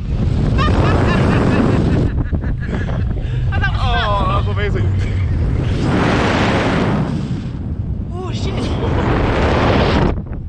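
A young man laughs close by.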